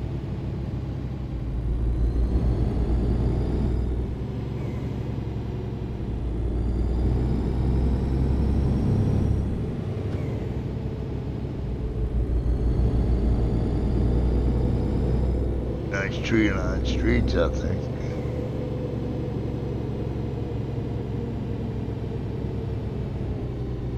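A truck engine rumbles steadily, rising in pitch as it speeds up and dropping back between gear changes.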